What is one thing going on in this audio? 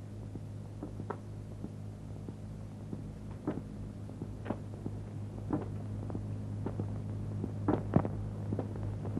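Footsteps knock on a hard floor.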